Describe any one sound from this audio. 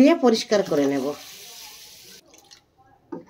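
Water pours into a metal pot of rice.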